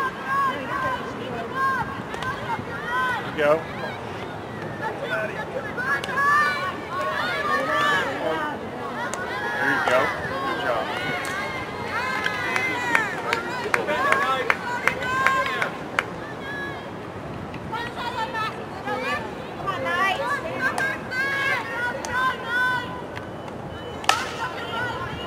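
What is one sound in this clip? Hockey sticks knock against a ball with sharp cracks.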